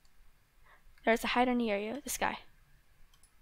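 A young girl speaks briefly with animation into a close microphone.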